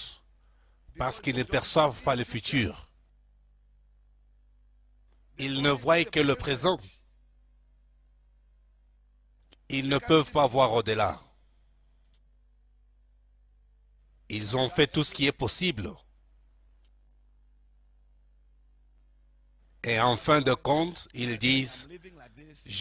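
A man preaches with animation into a microphone, in short bursts with pauses.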